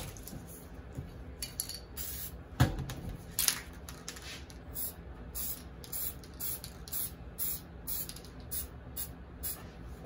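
A spray can hisses in short, repeated bursts.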